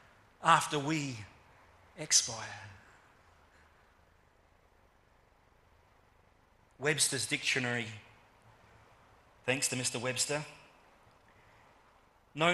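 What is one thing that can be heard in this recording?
A middle-aged man speaks calmly into a microphone in short phrases, with pauses between them.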